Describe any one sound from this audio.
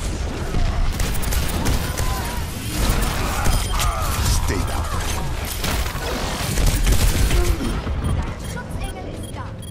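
Guns fire rapidly in a loud battle.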